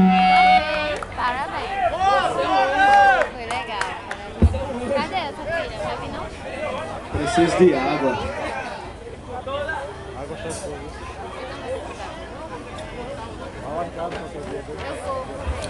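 A crowd of young people chatters nearby.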